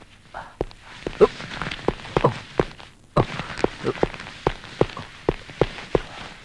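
A heavy body is dragged and scrapes across a hard floor.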